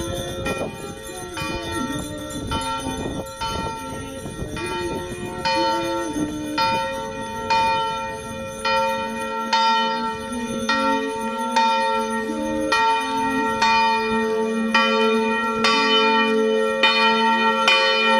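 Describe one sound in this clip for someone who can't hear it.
A crowd of elderly women and men sings a hymn together outdoors.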